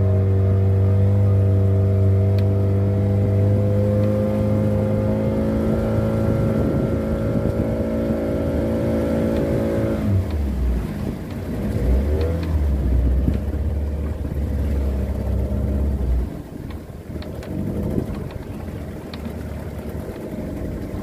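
Water rushes and splashes against a small boat's hull.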